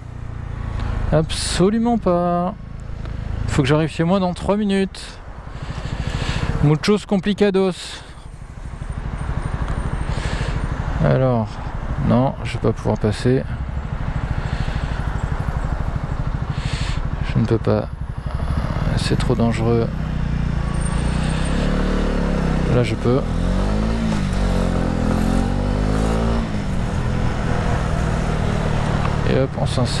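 A motorcycle engine hums and revs up and down as the bike rides along.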